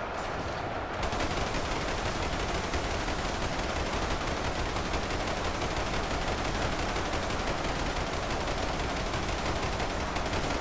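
A rapid-fire gun fires a long, continuous burst.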